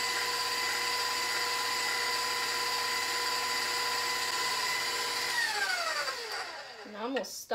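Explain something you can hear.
An electric stand mixer whirs steadily, then winds down.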